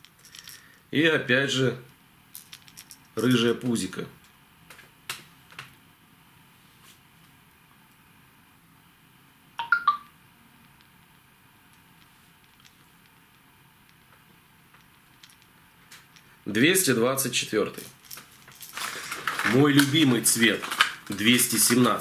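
A man speaks calmly close by, in short bursts with pauses.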